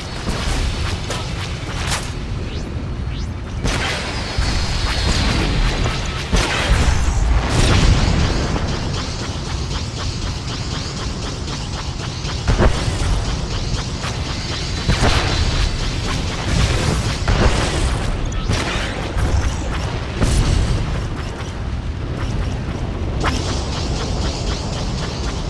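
A spaceship's engines roar steadily.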